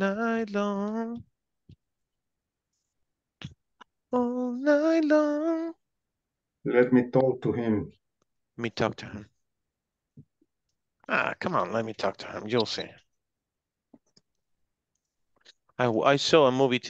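A young man speaks slowly and clearly over an online call, drawing out his words.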